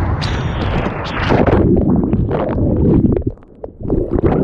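A wave breaks and rushes overhead.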